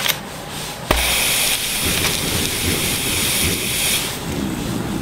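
A loud burst of rushing, hissing noise erupts and then dies away.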